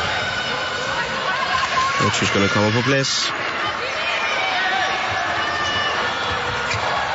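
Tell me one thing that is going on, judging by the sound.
Sports shoes squeak on a hard court.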